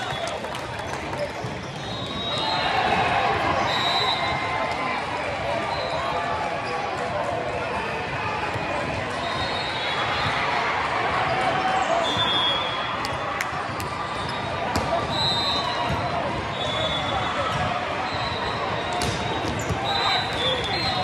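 A crowd chatters and cheers throughout a large echoing hall.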